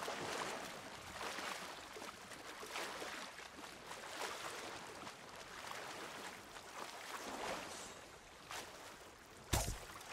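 Waves wash gently on the sea.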